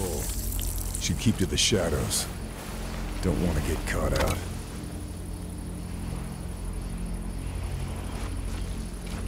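Footsteps shuffle softly on sand.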